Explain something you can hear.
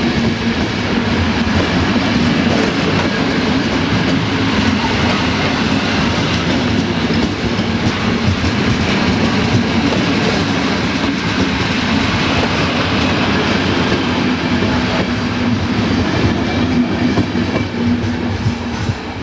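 A passenger train rumbles past close by on the rails.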